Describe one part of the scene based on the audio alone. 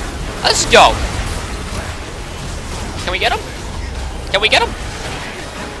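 Magic spells whoosh and zap in short bursts during a video game battle.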